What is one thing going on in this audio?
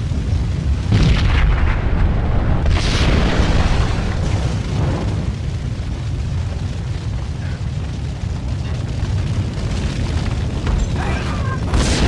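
Fire roars steadily.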